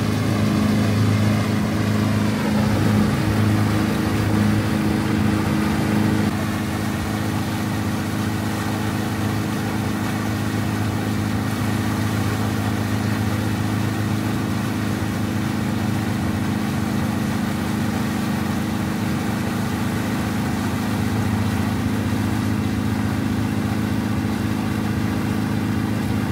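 A small boat's motor hums steadily.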